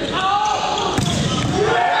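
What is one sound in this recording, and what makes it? A volleyball is spiked with a sharp slap in a large echoing hall.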